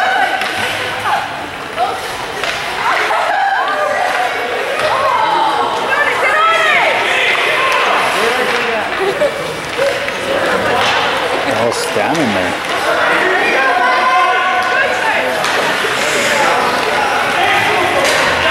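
Hockey sticks clack against the ice.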